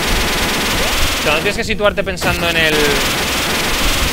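A chainsaw buzzes in a retro game.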